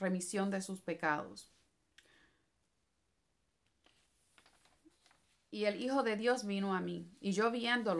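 A middle-aged woman speaks calmly and close to a microphone, with pauses.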